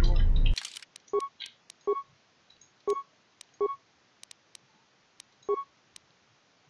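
Short menu beeps sound now and then.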